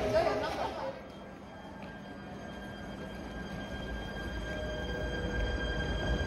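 An electric commuter train pulls away from a platform.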